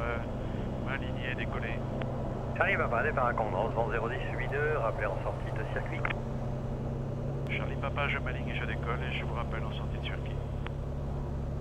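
A middle-aged man talks calmly over a headset intercom.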